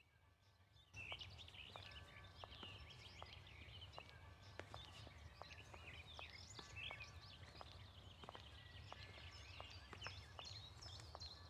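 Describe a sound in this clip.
Water trickles softly from a fountain.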